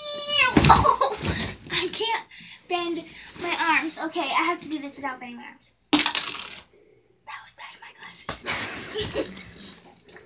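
Bedding rustles and thumps as a girl rolls on a bed.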